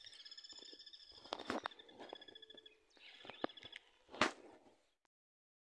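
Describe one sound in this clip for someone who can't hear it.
Footsteps crunch through dry grass and brush.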